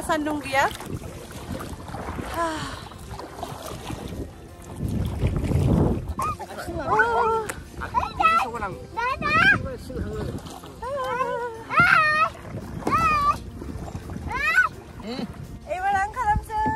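Paddles splash in water.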